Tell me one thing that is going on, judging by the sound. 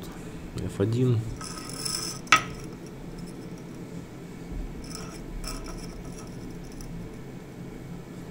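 A piece of pottery taps and scrapes on a metal plate.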